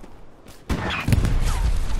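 A submachine gun fires a loud burst close by.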